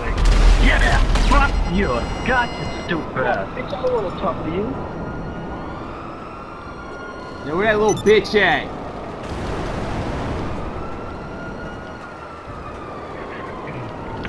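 A jet engine roars steadily, its pitch slowly rising and falling.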